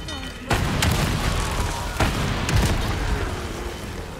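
An explosion bursts with a deep rumble.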